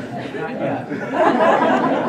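A man laughs.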